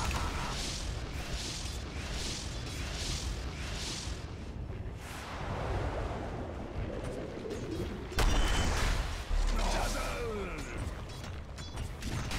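Spell effects crackle and whoosh in a game battle.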